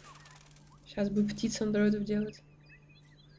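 A canary chirps and sings.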